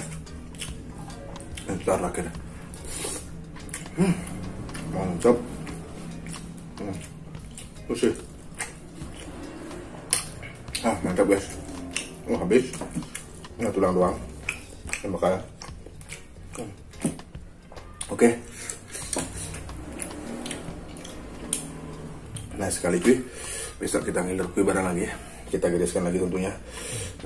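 A young man chews and smacks his lips loudly.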